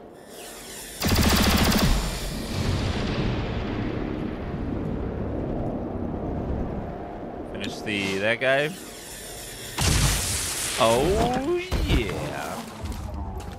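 A game weapon fires loud crackling energy bursts.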